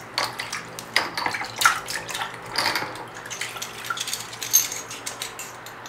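Water sloshes and splashes in a bowl.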